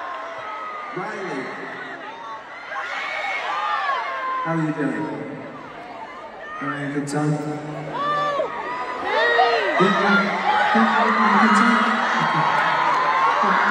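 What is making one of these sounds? A man sings through loudspeakers in a large echoing arena.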